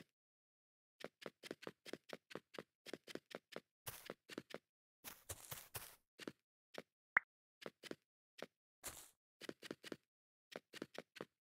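Light game footsteps patter quickly.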